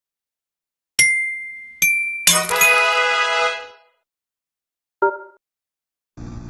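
Bright chimes ring out as a reward jingle plays.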